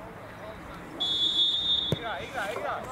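A referee's whistle blows a long blast.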